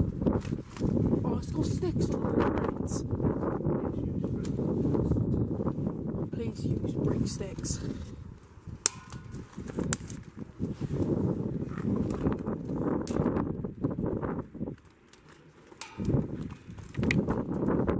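Dry twigs and leaves rustle and snap close by.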